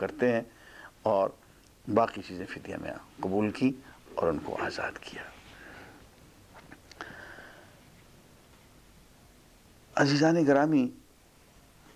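An elderly man speaks calmly into a microphone, pausing now and then.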